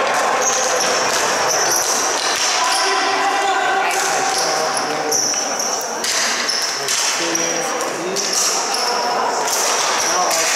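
Shoes squeak sharply on a smooth floor.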